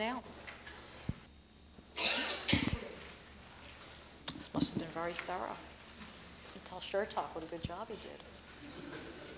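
A woman speaks to an audience through a microphone in a large echoing hall.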